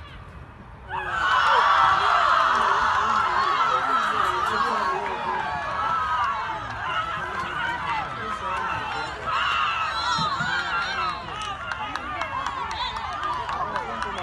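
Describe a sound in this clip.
Young women shout and celebrate excitedly nearby.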